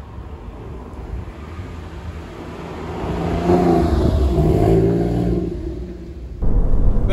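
A sports car engine roars as the car approaches and passes by close.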